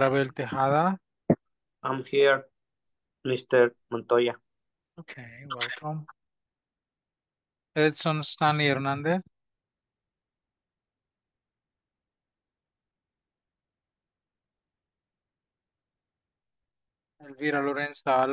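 An older man speaks calmly through an online call, in bursts with long pauses.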